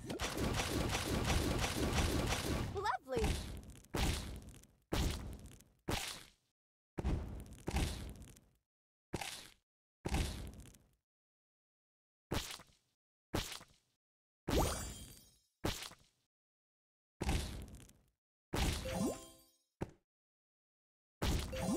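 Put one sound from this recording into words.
Game pieces burst with short, sharp popping effects that quickly fade.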